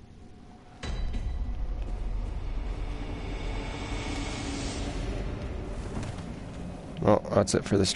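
Heavy footsteps tread on the ground.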